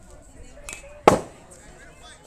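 A baseball smacks loudly into a catcher's mitt.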